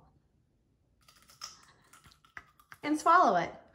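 A man chews food with his mouth closed.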